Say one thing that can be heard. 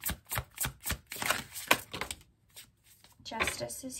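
A card is slapped down onto a table.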